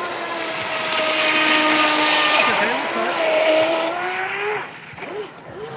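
A small motor whines at high pitch as a toy boat speeds across water.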